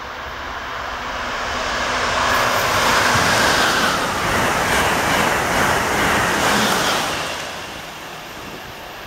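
A high-speed train rushes past close by with a loud roar that rises and then fades.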